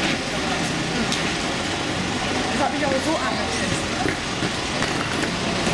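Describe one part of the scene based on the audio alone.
A revolving door whirs as it turns.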